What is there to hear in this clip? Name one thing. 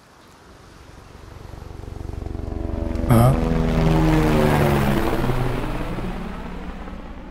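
A helicopter approaches, roars overhead and flies away.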